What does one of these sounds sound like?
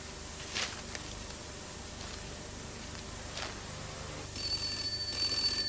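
A newspaper rustles as it is opened and handled.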